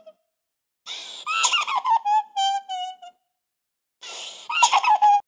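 A woman cries and wails into a microphone.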